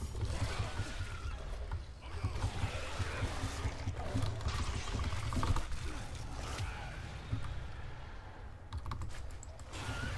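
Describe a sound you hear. A large beast snarls and growls as it attacks.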